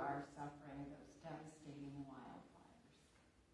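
A woman speaks calmly into a microphone in a large room.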